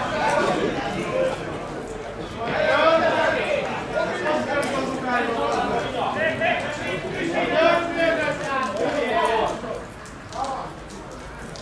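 Men in a nearby crowd talk and call out outdoors.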